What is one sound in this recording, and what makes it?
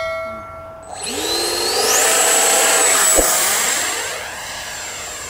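An electric model plane motor whines and revs up to a high, steady pitch.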